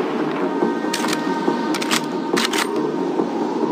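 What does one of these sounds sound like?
A rifle bolt clicks and clacks during reloading.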